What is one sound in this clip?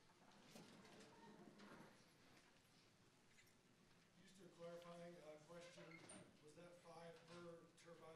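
A man speaks through a microphone to an audience in a large hall.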